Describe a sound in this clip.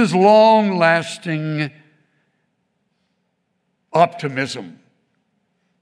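An elderly man speaks slowly and expressively into a microphone.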